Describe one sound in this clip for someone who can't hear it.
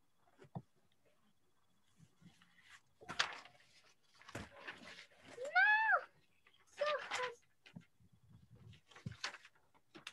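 Paper rustles and flaps as sheets are handled.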